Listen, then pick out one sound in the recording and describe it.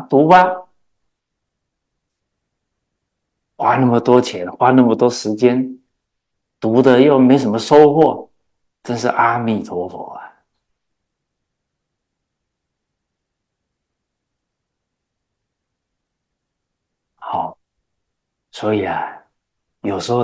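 An elderly man speaks calmly and warmly into a close microphone, in bursts with long pauses.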